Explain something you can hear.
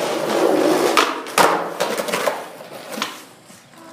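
A skateboard clatters onto concrete.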